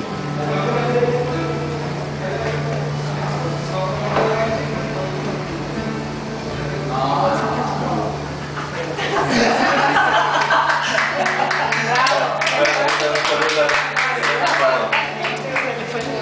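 A young man sings into a microphone through loudspeakers.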